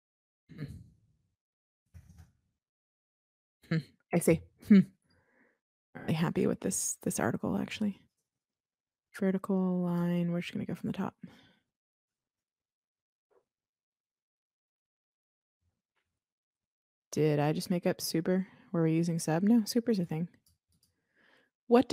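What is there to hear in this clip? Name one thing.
A woman talks calmly into a close microphone, with pauses.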